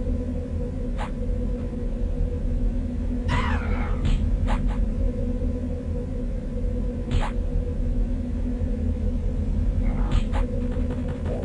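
Weapons strike and clang sharply in a fight.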